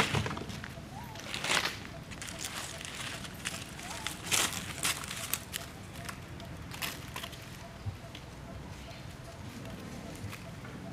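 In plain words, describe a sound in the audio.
A monkey chews and crunches on corn close by.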